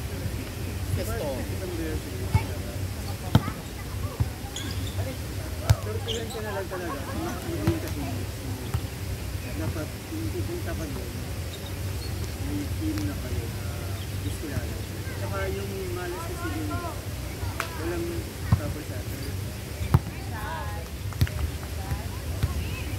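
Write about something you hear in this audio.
Young people call out and chatter nearby, outdoors.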